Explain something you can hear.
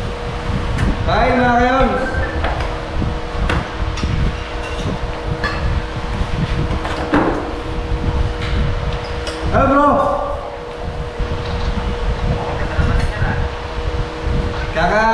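Several men chat casually close by.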